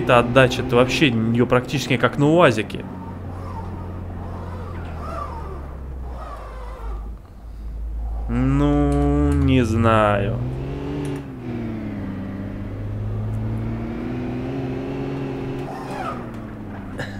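A car engine hums and revs as the car speeds up.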